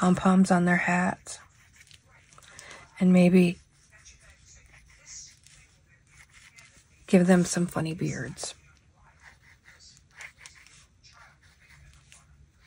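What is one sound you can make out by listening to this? Sheets of paper rustle softly as they are handled.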